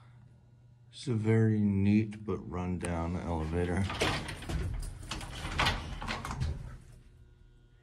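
An elevator car rattles and creaks as it moves.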